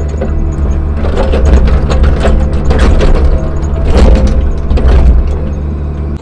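An excavator bucket scrapes and thuds through dirt and stones.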